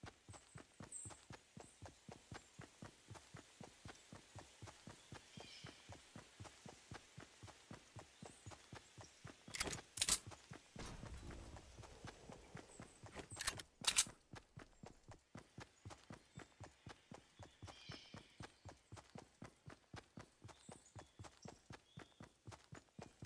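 Quick footsteps run steadily over grass and a path.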